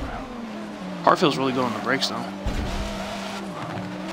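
Car tyres squeal through a bend.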